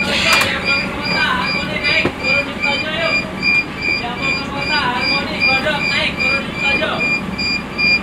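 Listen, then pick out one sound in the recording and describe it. Adult passengers talk quietly nearby.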